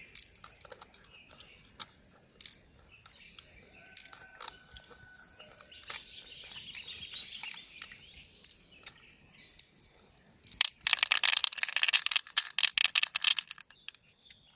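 Small beads click and rattle in a hand.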